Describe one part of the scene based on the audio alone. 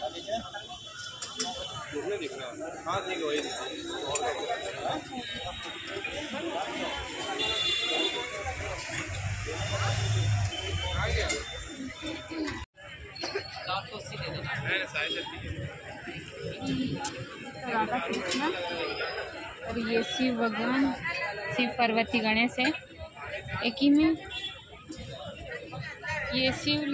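A crowd murmurs and chatters all around.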